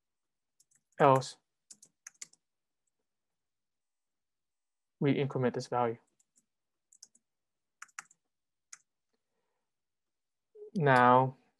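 A young man speaks calmly in short phrases into a nearby microphone.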